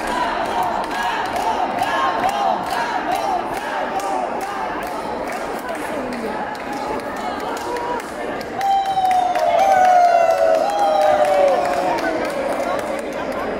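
Men talk casually among themselves in a large echoing hall.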